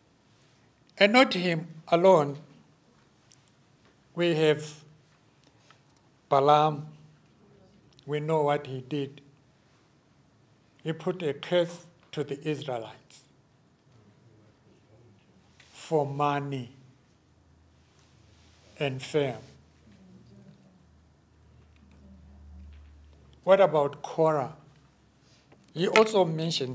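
An elderly man speaks slowly and calmly into a microphone, with pauses between phrases.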